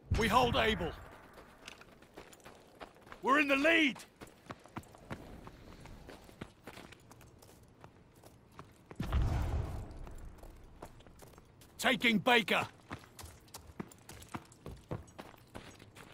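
Footsteps tap and crunch on a hard floor.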